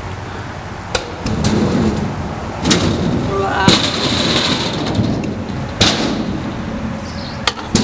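A kick scooter's wheels roll across concrete.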